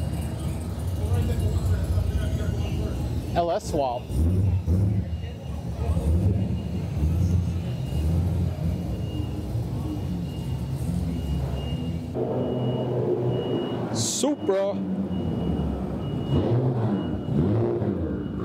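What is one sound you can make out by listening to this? A sports car engine idles with a deep, rumbling burble.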